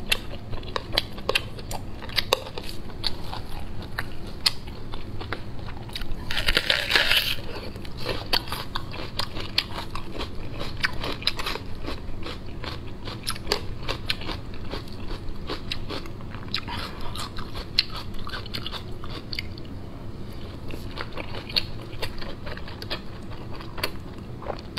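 A woman chews food wetly, close to a microphone.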